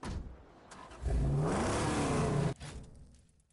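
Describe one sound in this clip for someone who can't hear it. A car engine revs loudly and roars.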